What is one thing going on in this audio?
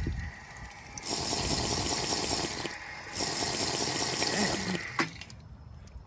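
Water splashes from a drinking fountain.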